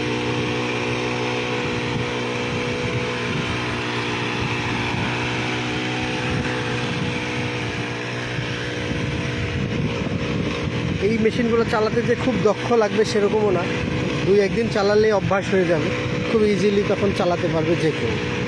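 A small engine whines steadily.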